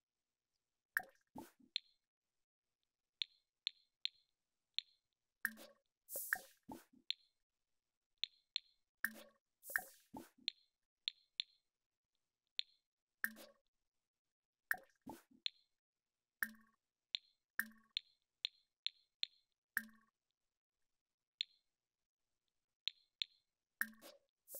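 Short soft interface clicks sound again and again.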